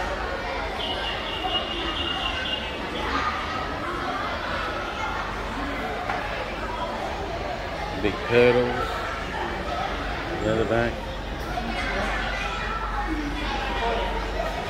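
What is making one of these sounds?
A crowd of visitors murmurs and chatters in an echoing indoor hall.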